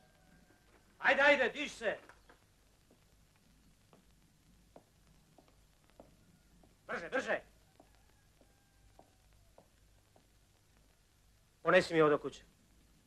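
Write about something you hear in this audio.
A young man speaks in short phrases.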